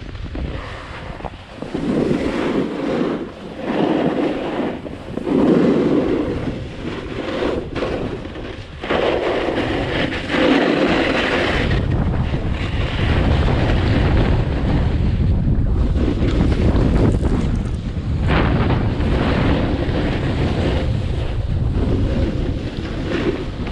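Wind rushes loudly past the skier.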